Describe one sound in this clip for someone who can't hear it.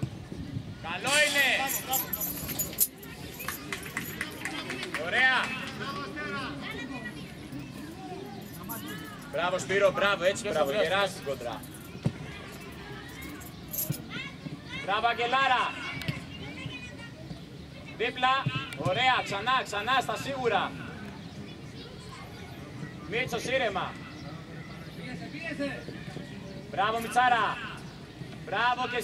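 Children shout loudly outdoors during a game.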